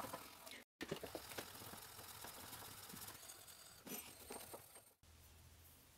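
Metal scrapes and rubs against a wooden board.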